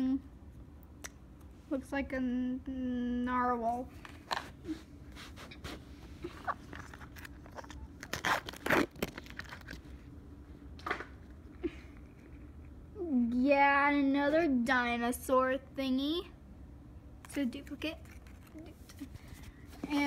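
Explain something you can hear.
A plastic toy package crinkles as a hand handles it.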